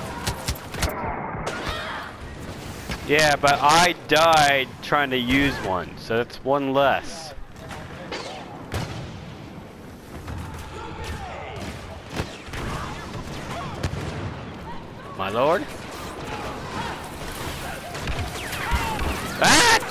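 Blaster shots zap and crack in rapid bursts.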